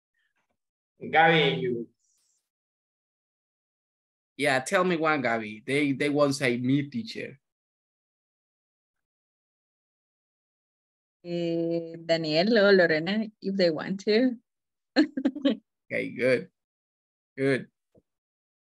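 A woman speaks with animation over an online call, in short bursts with pauses.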